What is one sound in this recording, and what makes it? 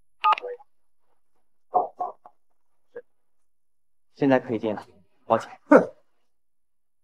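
A young man speaks softly and apologetically, close by.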